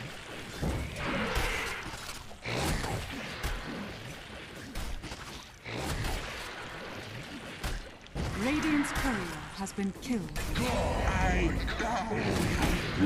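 Game spells and weapons clash and burst in a fight.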